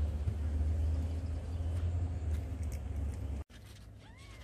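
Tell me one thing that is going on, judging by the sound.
A cat crunches dry food.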